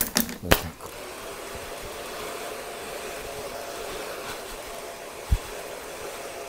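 A hair dryer blows with a steady whir.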